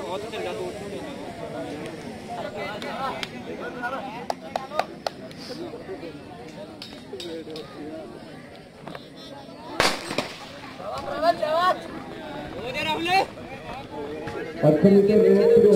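Young men and boys chatter and call out nearby, outdoors.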